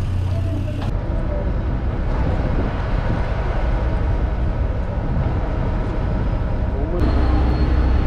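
Wind blows over open water.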